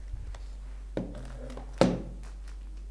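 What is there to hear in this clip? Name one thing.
Bottles knock against a table.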